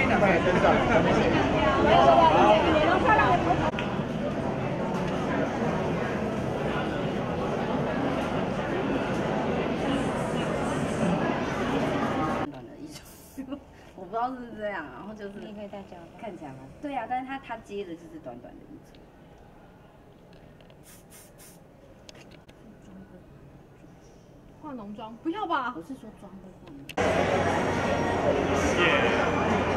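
A large crowd chatters loudly in an echoing hall.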